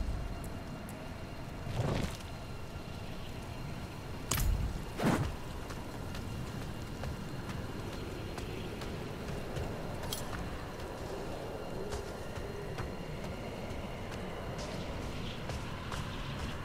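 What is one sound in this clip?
Wind blows steadily over snow.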